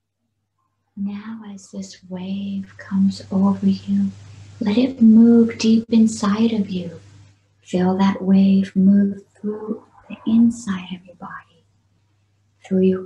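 A woman speaks calmly and softly through a microphone, heard over an online call.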